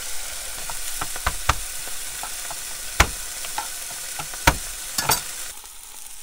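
A knife chops sharply on a cutting board.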